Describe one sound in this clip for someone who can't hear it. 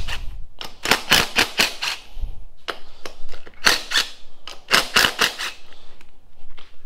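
An impact driver rattles in short bursts.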